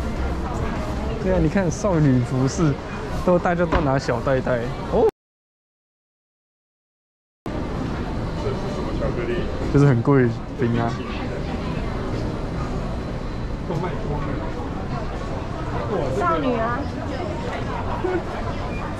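A crowd murmurs in a large indoor space.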